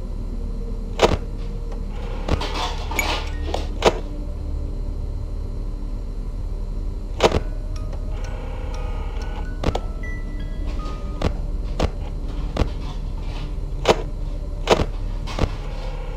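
Sharp electronic clicks sound now and then.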